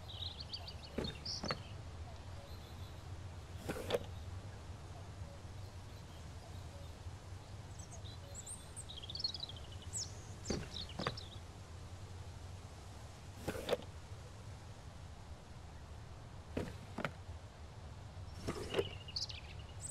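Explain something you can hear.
A wooden crate lid thumps open and shut.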